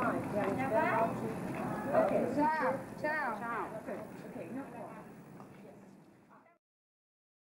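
Adults chat together outdoors.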